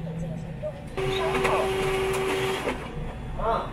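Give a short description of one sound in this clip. A cash machine whirs loudly while counting out notes.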